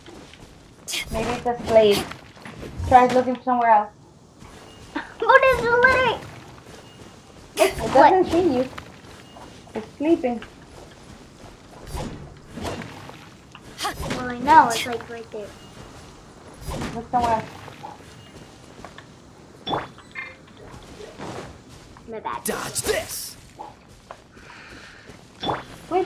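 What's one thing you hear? A young girl talks with animation close to a microphone.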